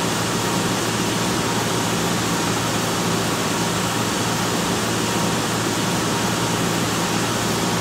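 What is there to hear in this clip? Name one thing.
Jet engines roar steadily with rushing air.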